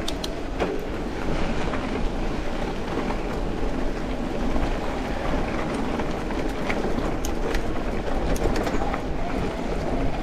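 Wind rumbles past outdoors.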